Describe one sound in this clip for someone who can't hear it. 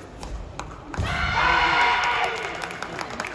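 Karate performers shout loudly together.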